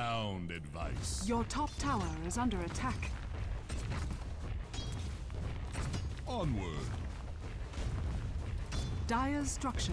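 Weapons clash and strike in a game battle.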